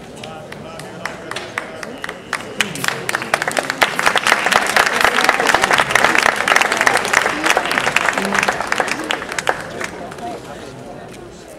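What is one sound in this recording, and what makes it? An audience claps and applauds loudly, then fades.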